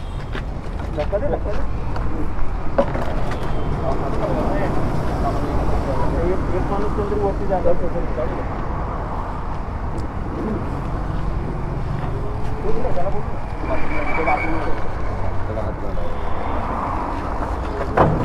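Men talk to each other nearby.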